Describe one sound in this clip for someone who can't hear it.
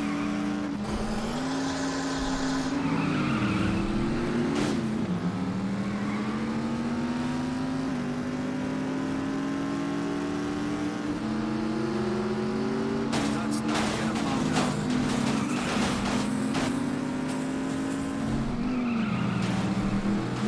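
Tyres skid and screech on cobblestones.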